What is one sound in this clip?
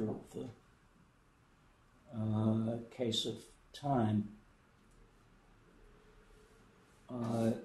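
An elderly man speaks calmly in short phrases with pauses.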